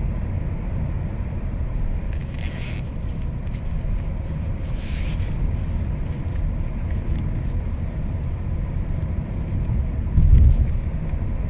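A car engine rumbles steadily from inside a moving vehicle.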